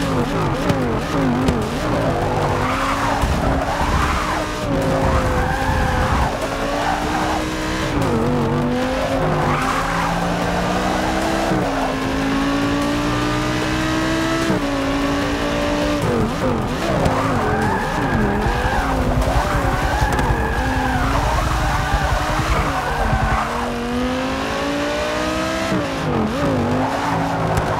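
Tyres squeal through tight corners.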